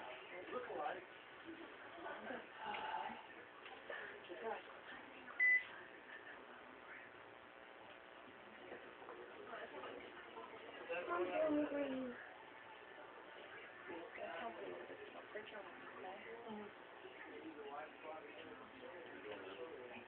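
A tattoo machine buzzes steadily.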